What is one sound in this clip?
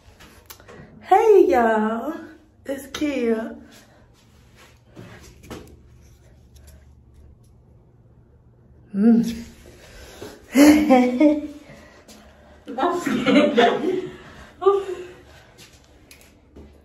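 A young woman laughs and shrieks loudly close by.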